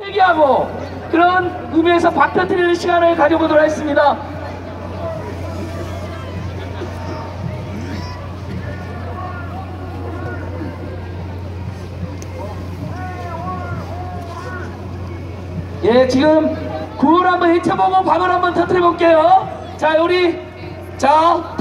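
A woman speaks with animation through loudspeakers in an open outdoor space.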